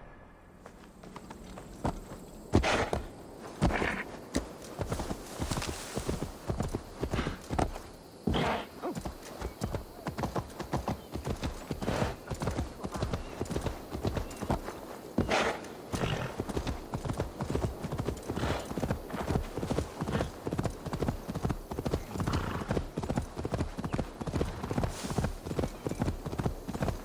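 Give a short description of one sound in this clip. A horse's hooves thud rhythmically on soft ground.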